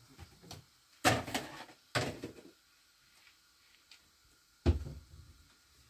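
Dishes clink and knock as they are handled.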